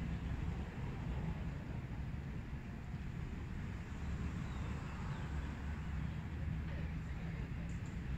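Wind rumbles steadily across an open outdoor space.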